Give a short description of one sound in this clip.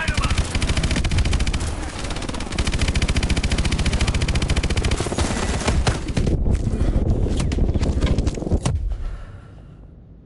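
Heavy explosions boom and roar.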